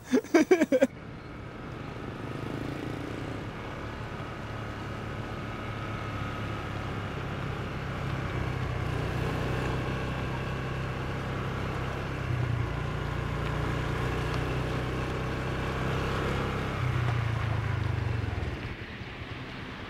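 A motorbike engine hums steadily as it rides closer.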